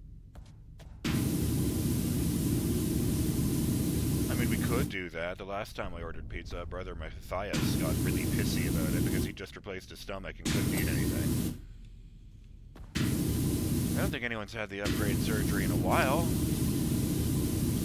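A pressure washer sprays a hissing jet of water against metal.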